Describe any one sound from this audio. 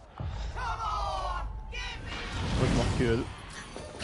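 Metal blades clash and ring in a fight.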